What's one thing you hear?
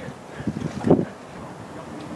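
Water splashes beside a boat.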